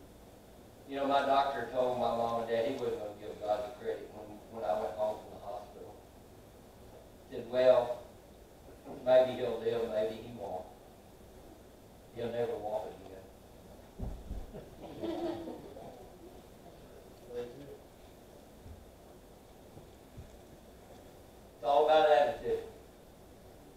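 A middle-aged man speaks slowly and with pauses into a microphone in an echoing hall.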